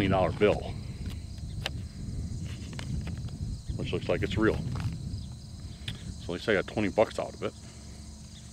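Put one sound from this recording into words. A young man talks nearby outdoors.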